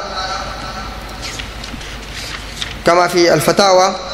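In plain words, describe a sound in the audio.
Pages of a book rustle as they turn.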